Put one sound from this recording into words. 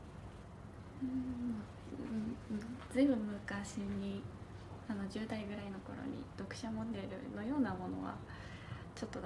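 A young woman speaks softly and shyly nearby.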